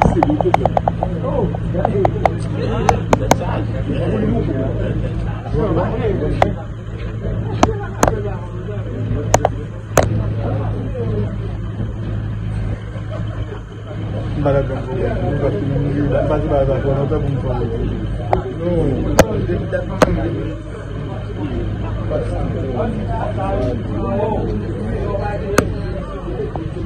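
A vehicle engine idles with a steady low hum.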